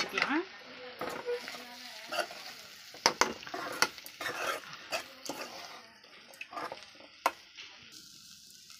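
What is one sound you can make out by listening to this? A metal spoon scrapes and clatters against a metal pan.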